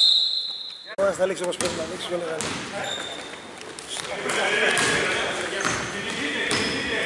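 Sneakers squeak sharply on a hard floor in an echoing hall.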